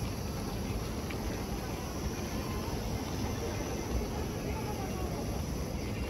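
Wind blows outdoors and rustles the leaves of nearby trees.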